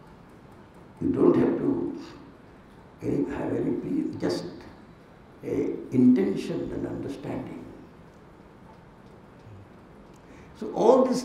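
An older man speaks into a microphone in bursts, with long pauses.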